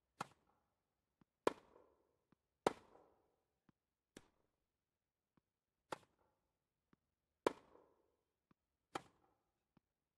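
Tennis rackets strike a ball back and forth in sharp pops.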